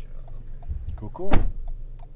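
A man speaks briefly close by.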